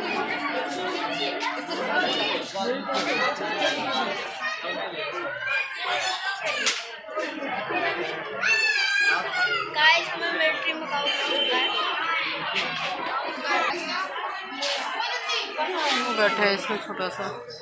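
A crowd of visitors chatters and calls out nearby.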